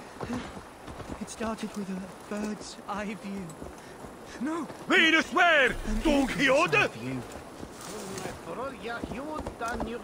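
A man rambles excitedly, nearby.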